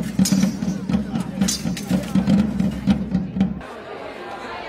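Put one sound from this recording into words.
Steel swords clang together in quick blows.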